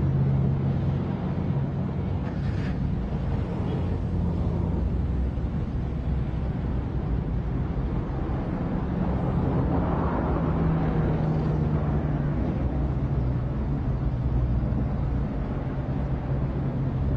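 A car engine hums steadily nearby.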